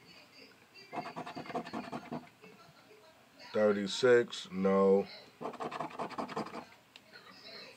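A fingernail scrapes the coating off a scratch card.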